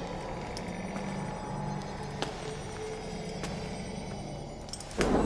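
Footsteps clank slowly on a metal floor.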